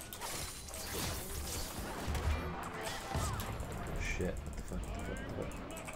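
Magic spell effects whoosh and crackle during a fight.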